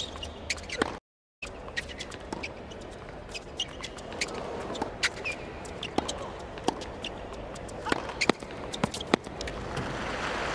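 A tennis racket strikes a ball back and forth in a rally.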